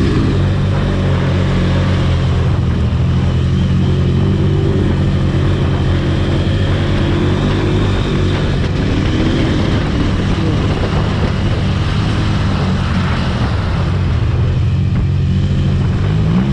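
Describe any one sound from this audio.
Tyres crunch over sand and mud.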